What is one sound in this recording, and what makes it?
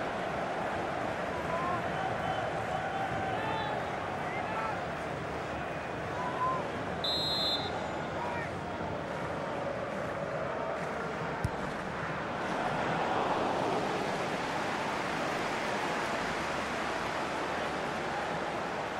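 A large crowd roars and chants steadily in a stadium.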